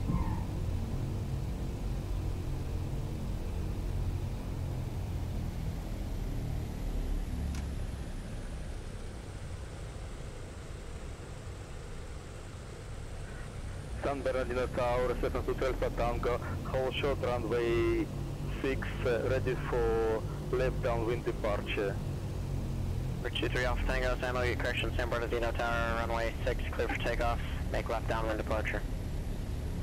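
Aircraft engines hum low and steady at idle.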